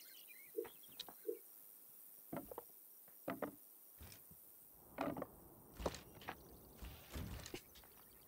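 Hammers knock on wood now and then.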